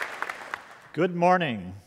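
An older man speaks calmly into a microphone in a large hall.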